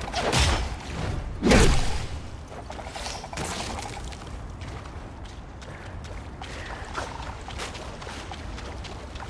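Water splashes loudly as someone wades through it.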